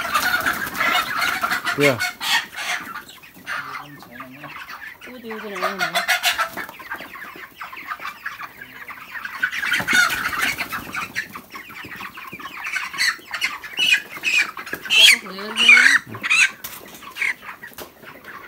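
Many chicks chirp and peep constantly, close by.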